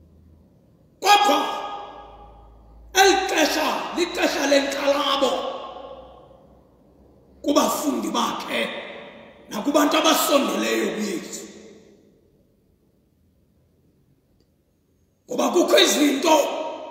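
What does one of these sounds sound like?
A man preaches with animation into a microphone in a large echoing hall, pausing between phrases.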